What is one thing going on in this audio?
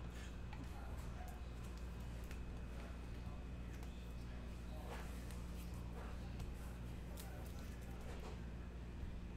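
Trading cards rustle and tap as they are handled.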